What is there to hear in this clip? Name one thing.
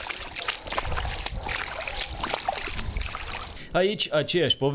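Rubber boots splash through shallow muddy water.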